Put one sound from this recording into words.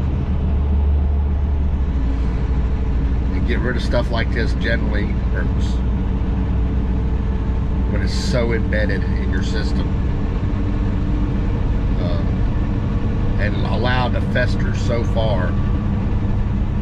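A truck engine drones steadily with road rumble.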